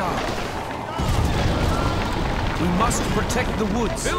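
A cannonball crashes into stone with a deep boom.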